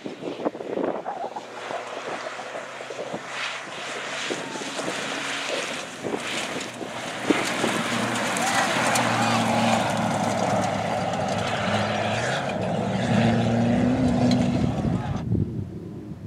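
Gravel and dirt spray and crunch under tyres.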